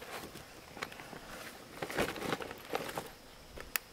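A paper sack rustles as it is handled.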